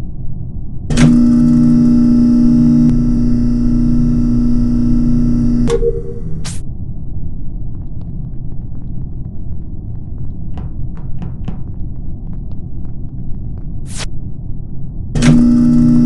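A garbage chute rumbles with a steady mechanical hum.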